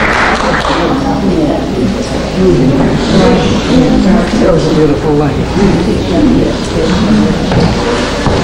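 A crowd of people chatter in a large room.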